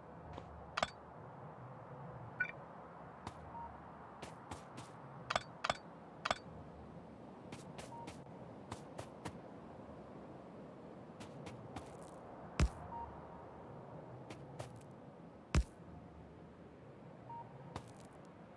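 Short sharp clicks sound as pieces of rail track snap into place.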